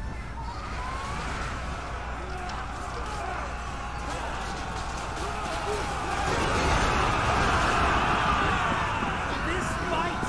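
A crowd of soldiers roars and clashes in battle.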